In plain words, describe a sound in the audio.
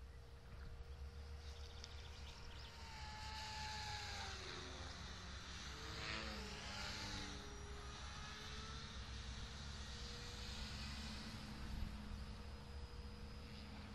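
A radio-controlled model helicopter whines overhead, its pitch rising and falling as it passes.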